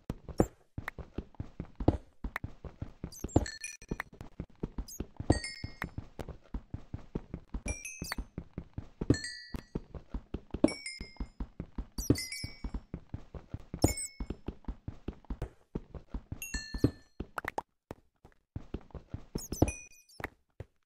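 Stone blocks crumble and break with a crunch.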